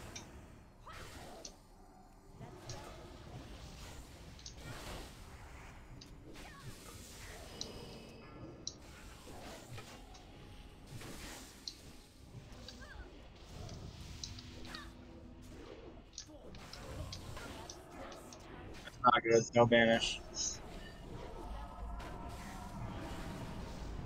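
Magic spells whoosh and chime during a fight.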